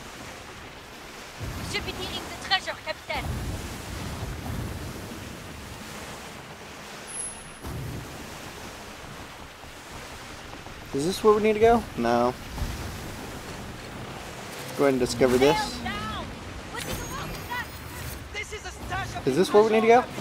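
Water rushes and splashes against a sailing ship's hull.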